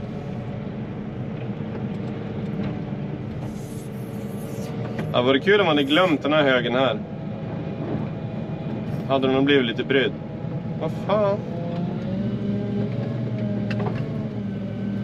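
A plow blade scrapes and pushes snow across pavement.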